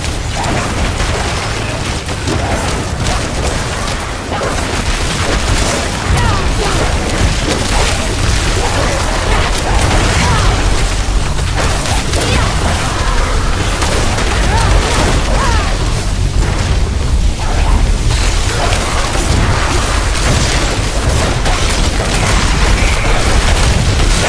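Magic spells crackle and explode in rapid bursts.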